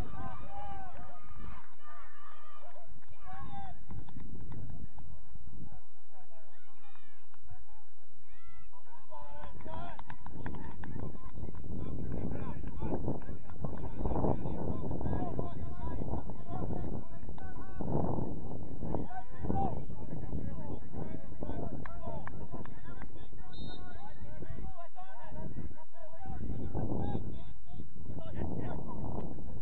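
Players shout to each other across an open field in the distance.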